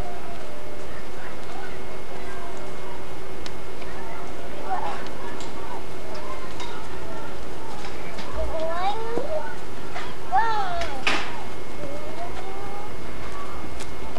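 Young children's voices chatter and call out close by.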